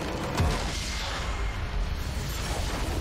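Magical blasts crash and whoosh in a video game.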